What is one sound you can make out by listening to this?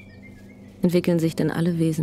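A young woman runs through rustling undergrowth.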